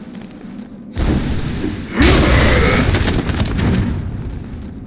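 A burst of fire whooshes and crackles.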